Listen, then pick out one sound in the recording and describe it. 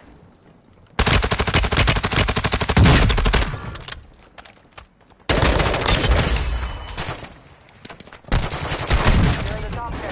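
Automatic gunfire rattles loudly in rapid bursts.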